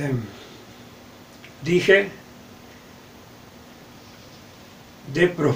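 An elderly man speaks calmly and close up, in short phrases with pauses.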